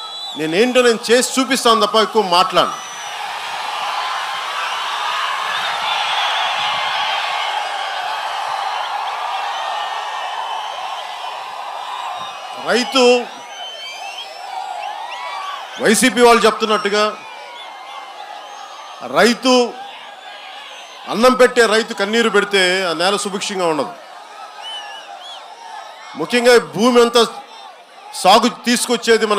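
A man speaks forcefully into a microphone, heard through loudspeakers with pauses between bursts.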